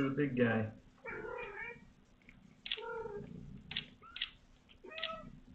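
A tiny kitten mews repeatedly in high, thin cries.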